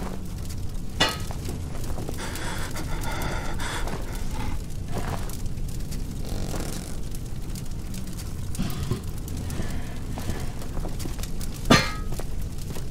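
A fireball bursts with a loud whoosh.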